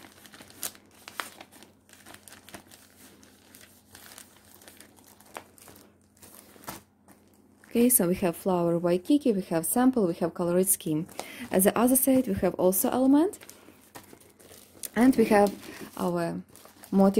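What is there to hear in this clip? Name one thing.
Plastic sleeves rustle and crinkle as they are handled.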